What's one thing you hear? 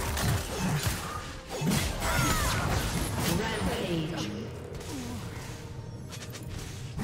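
Magic blasts burst and crackle during a video game fight.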